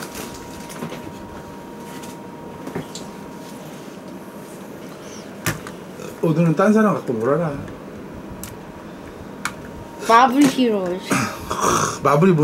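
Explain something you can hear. Plastic toy bricks click and clatter as a boy handles them.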